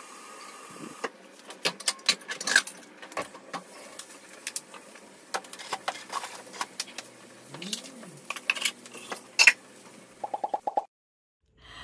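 Plastic packaging rustles and crinkles as items are handled.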